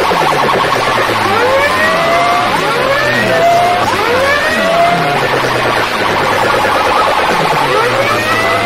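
A crowd of young men cheers and shouts.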